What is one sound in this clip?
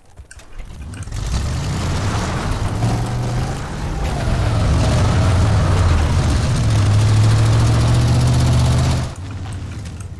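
A vehicle engine roars loudly and steadily.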